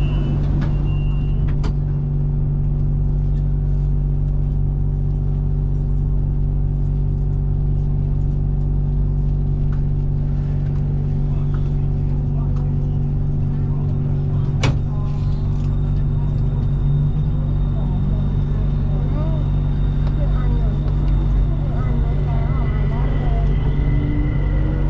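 A train hums and rumbles steadily along the track.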